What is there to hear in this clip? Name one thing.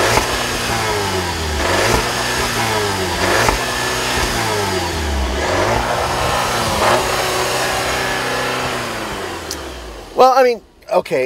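A car exhaust rumbles and revs up and down repeatedly.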